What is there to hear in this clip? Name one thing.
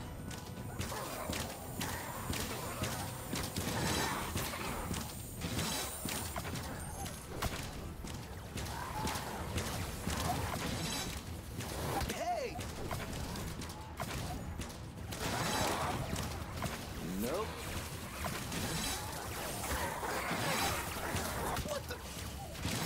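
Swords clash and slash in quick, repeated strikes.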